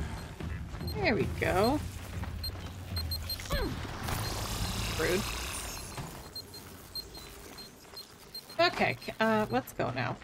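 A mechanical beast lets out warbling electronic cries.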